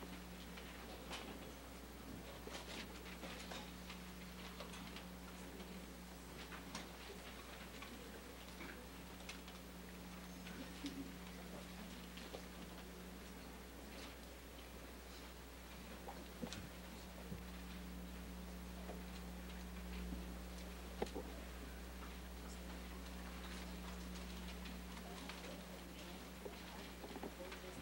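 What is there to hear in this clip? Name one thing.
A man speaks calmly at a distance in an echoing room.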